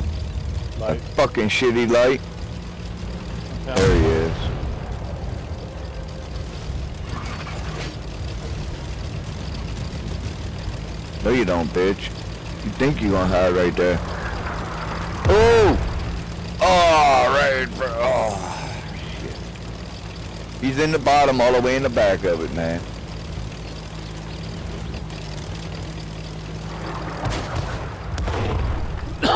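Tank tracks clatter over rough ground.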